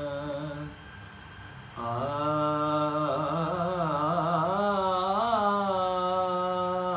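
A young man sings a long, wavering melody close by.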